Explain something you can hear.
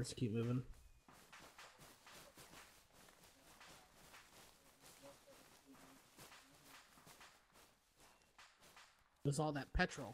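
Footsteps rustle through dry grass and ferns.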